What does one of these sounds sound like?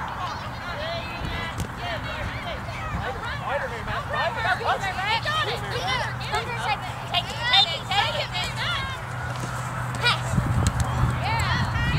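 Young girls call out to each other while playing.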